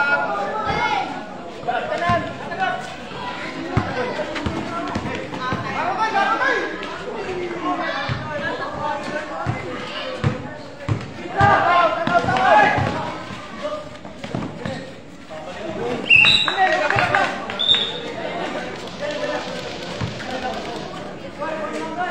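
A basketball is dribbled and bounces on a concrete court.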